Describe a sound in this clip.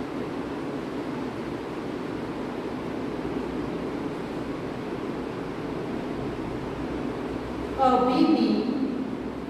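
A marker scratches and squeaks on a whiteboard.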